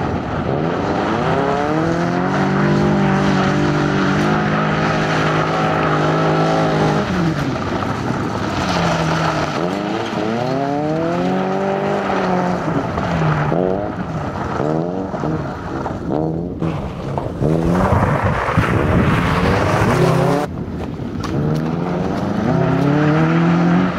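A car engine revs hard and rises and falls in pitch.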